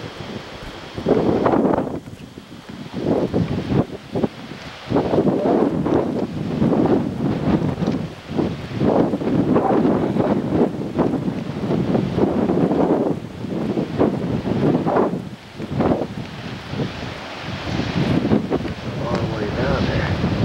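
Wind gusts loudly outdoors, buffeting the microphone.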